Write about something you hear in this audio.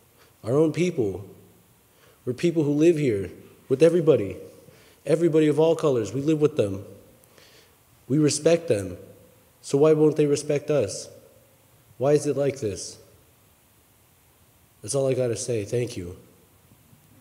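A woman speaks slowly through a microphone in a large echoing hall, pausing between phrases.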